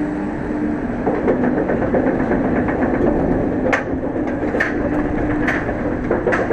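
A lift chain clanks rapidly as a roller coaster train climbs a hill.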